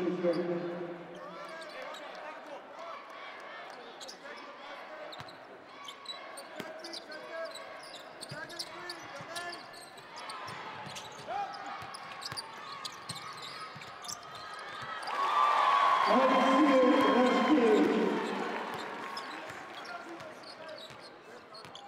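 Basketball players' sneakers squeak on a hardwood court in a large echoing arena.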